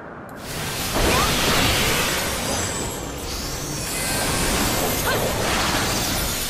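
Magic spells whoosh and burst loudly.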